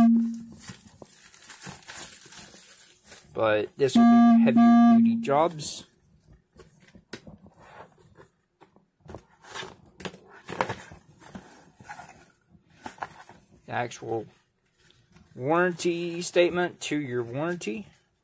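A cardboard box scrapes and taps as hands handle and open it.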